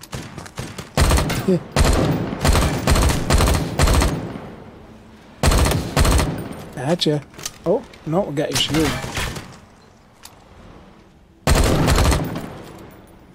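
Gunfire bursts out in loud rapid volleys.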